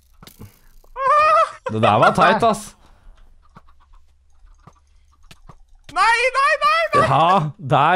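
A young man shouts and laughs excitedly into a close microphone.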